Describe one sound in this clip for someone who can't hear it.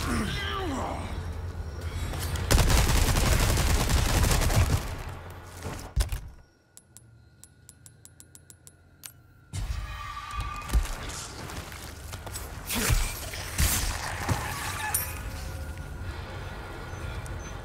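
Footsteps crunch on gravel and dirt.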